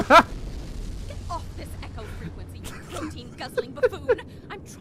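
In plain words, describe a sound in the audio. A young woman speaks sharply and with irritation.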